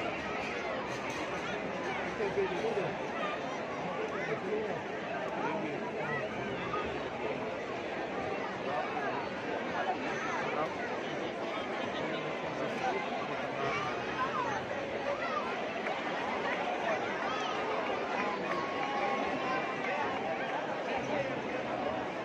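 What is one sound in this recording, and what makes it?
A large crowd chatters and shouts loudly outdoors.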